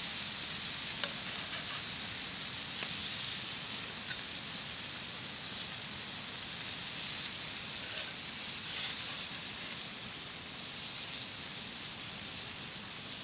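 A metal spatula scrapes and taps against a grill.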